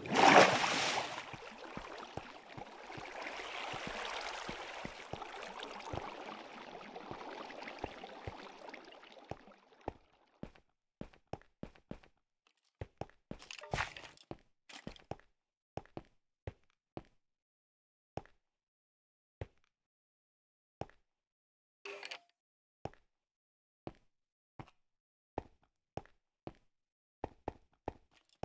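Footsteps tread on stone at an even pace.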